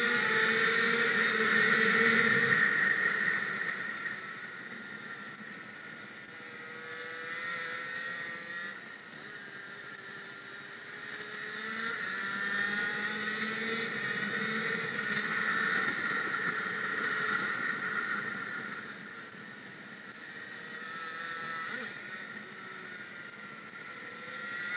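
A motorcycle engine roars close by, rising and falling as it revs through the gears.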